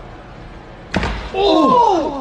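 A man's body thuds onto a concrete floor.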